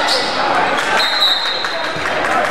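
A whistle blows shrilly.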